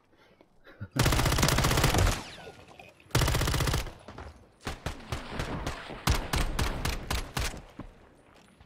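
A rifle fires rapid bursts of shots up close.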